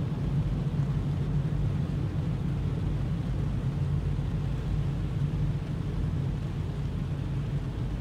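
Windshield wipers sweep across the glass.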